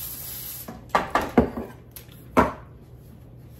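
A woman sprays cooking oil from a can.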